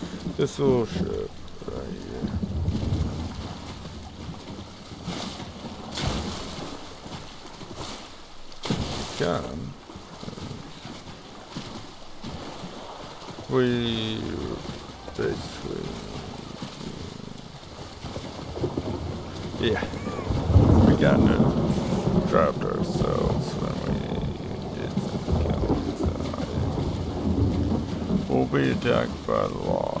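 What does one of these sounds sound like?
Water splashes as a swimmer paddles steadily through it.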